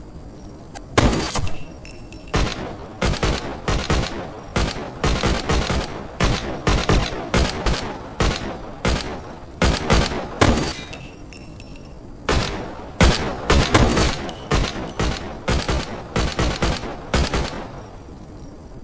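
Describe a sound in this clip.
Rifles fire in rapid bursts of loud shots.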